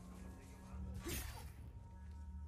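A sword swishes through the air in a quick slash.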